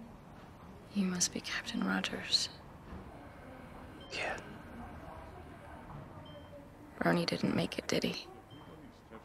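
A woman speaks quietly and close by.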